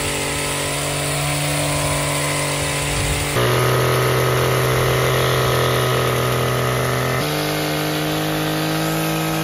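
A petrol hedge trimmer engine drones steadily outdoors.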